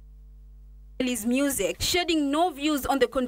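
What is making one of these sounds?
A man speaks into a microphone with animation.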